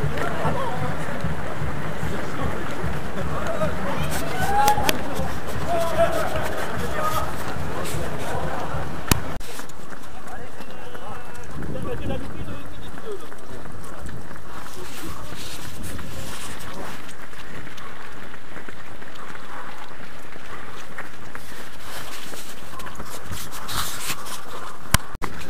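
Many runners' footsteps patter on a paved road.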